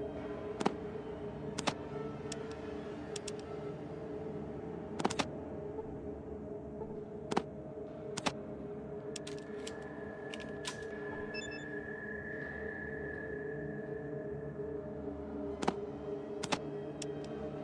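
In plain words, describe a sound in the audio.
Short sharp interface clicks sound now and then.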